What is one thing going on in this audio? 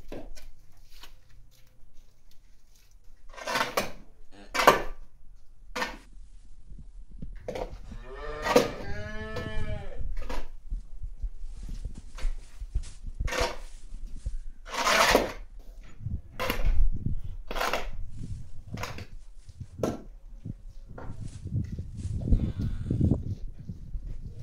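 A rake scrapes and drags over muddy manure on the ground.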